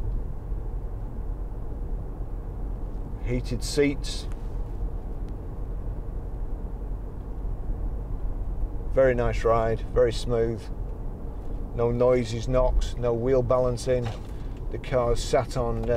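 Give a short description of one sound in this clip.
A car engine hums steadily with road noise inside the car.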